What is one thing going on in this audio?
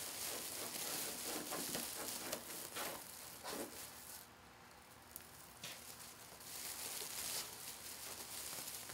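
Plastic mesh ribbon rustles and crinkles close by.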